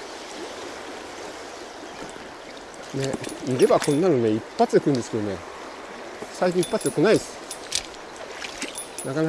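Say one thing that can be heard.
A river rushes steadily nearby.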